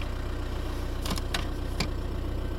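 A plastic dashboard lid clicks open.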